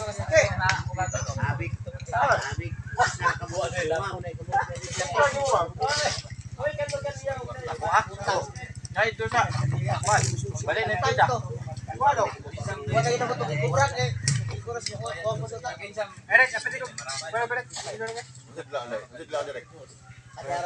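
Several men talk and chat casually close by, outdoors.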